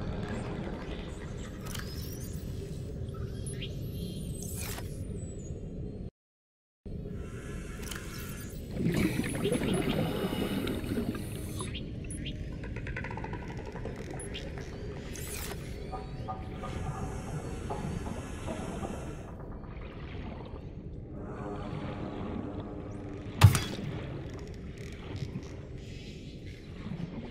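A low underwater hum and bubbling murmur runs steadily.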